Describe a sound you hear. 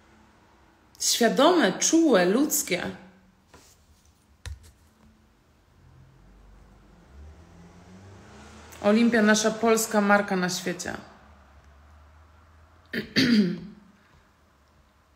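A young woman speaks close to the microphone in short, calm bursts with pauses.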